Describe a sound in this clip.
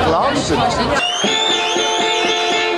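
A rock band plays with electric guitars and a drum kit.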